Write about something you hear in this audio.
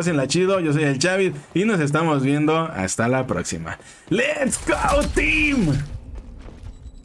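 A young man talks excitedly and laughs into a close microphone.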